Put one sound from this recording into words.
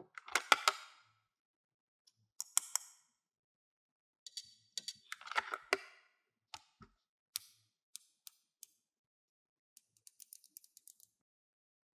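Plastic toy pieces click and clatter as hands handle them.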